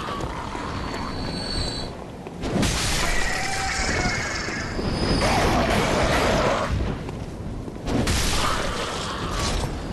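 A blade slashes and strikes with heavy impacts.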